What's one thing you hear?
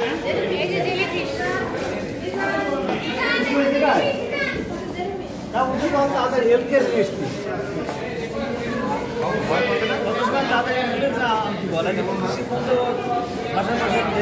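Children and adults chatter nearby, with voices overlapping.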